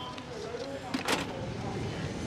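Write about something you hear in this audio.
A payphone handset is hung up with a click.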